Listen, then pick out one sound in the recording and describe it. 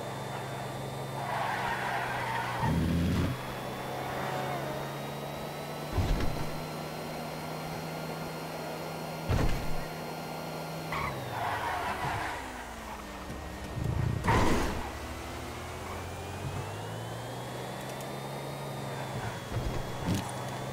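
Tyres screech through tight corners.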